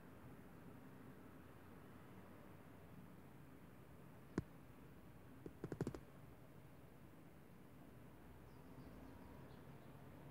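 Small birds chirp outside a window.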